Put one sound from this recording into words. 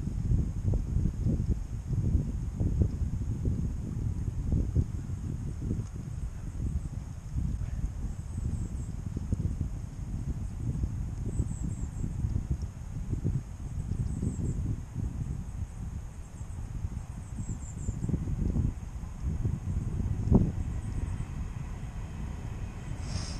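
Strong wind buffets and rumbles across the microphone outdoors.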